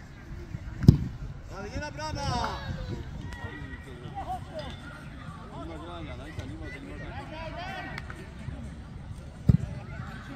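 A football is kicked with a hard thud.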